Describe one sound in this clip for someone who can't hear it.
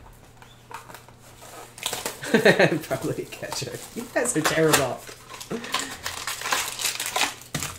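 Cardboard scrapes as a box is pulled open.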